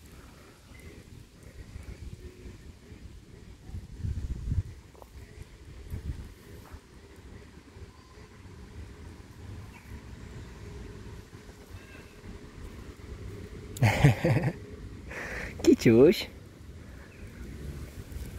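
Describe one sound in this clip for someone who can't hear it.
A hand strokes a cat's fur with a soft rustle.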